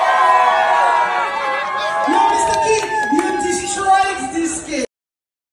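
A crowd of people sings loudly together nearby.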